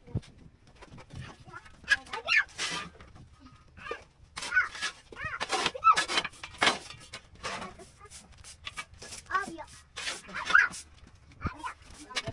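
A large plastic sheet rustles and crinkles as it is moved.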